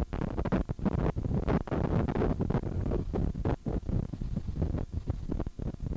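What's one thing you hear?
Sea water rushes and splashes along a ship's hull.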